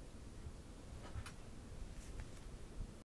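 Bedding rustles close by as a woman shifts her weight.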